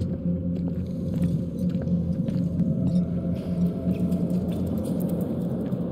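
Footsteps thud slowly across a wooden floor.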